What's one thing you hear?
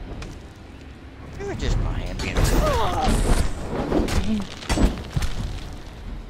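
A weapon strikes a creature with heavy thuds.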